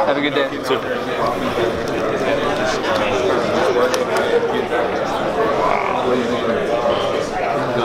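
Many men and women chatter around a large echoing room.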